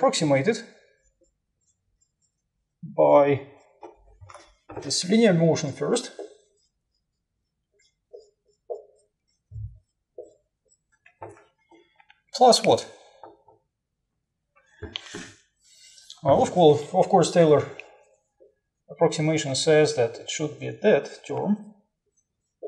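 A man speaks in bursts, lecturing calmly.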